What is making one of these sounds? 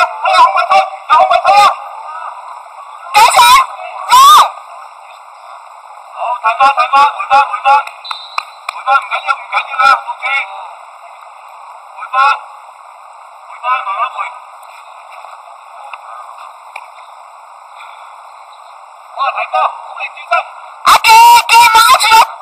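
Young men shout to each other in the open air, some way off.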